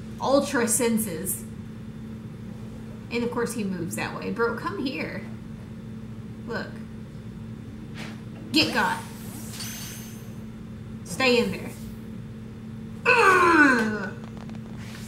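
A young woman talks casually into a close microphone, in short bursts.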